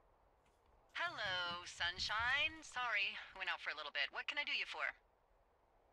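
A woman speaks cheerfully over a two-way radio.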